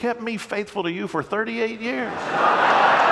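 An older man speaks calmly through a microphone in a large echoing hall.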